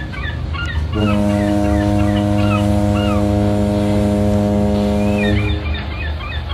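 A foghorn sounds a long, deep, steady blast.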